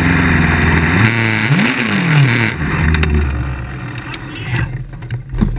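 A race car engine revs up and down close by.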